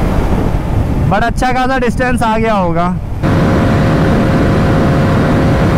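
A motorcycle engine hums steadily at speed.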